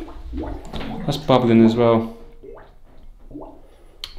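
A toilet flushes with rushing, swirling water.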